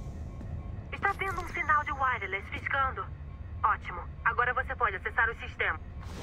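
A man talks with animation through a microphone.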